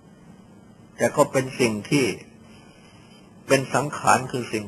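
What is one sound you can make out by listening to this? An elderly man speaks calmly and slowly.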